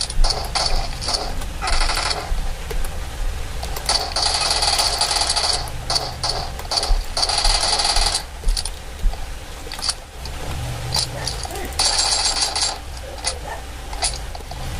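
Keyboard keys click under quick finger presses.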